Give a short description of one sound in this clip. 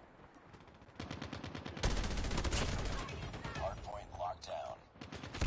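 A rifle fires in rapid bursts, close by.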